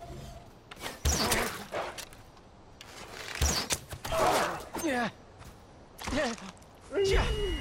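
A wolf snarls and growls aggressively up close.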